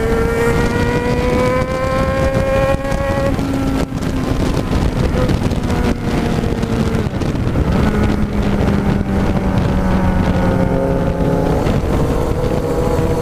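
A motorcycle engine hums steadily at speed, shifting pitch as it changes gear.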